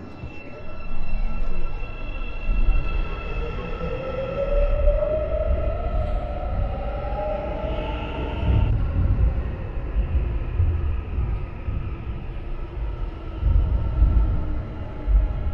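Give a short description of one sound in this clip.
A train rumbles and clatters as it pulls away.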